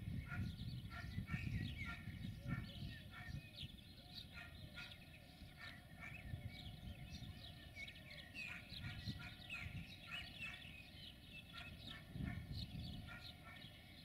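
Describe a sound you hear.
A diesel locomotive rumbles slowly along the tracks in the distance.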